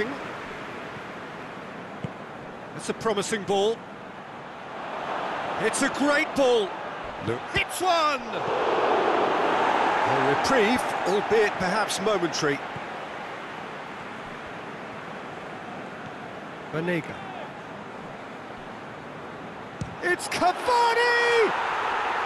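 A large stadium crowd murmurs steadily and swells into a roar.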